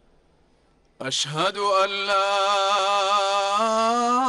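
A man chants a call to prayer loudly through loudspeakers, with a long ringing echo.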